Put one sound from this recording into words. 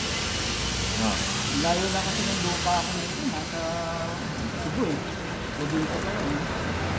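A woman talks nearby in a calm voice.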